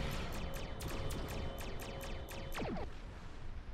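Energy weapons fire in rapid, repeated bursts.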